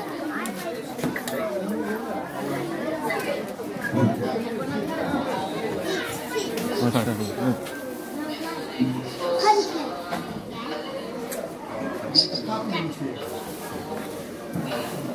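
A crowd of men, women and children chatters all around, close by.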